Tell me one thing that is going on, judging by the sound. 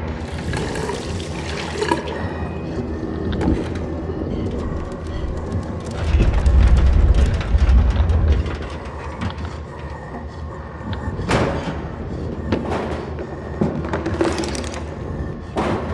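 A hanging body creaks as it sways from side to side.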